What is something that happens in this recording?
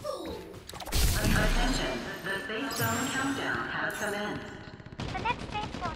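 A bright sparkling chime rings out.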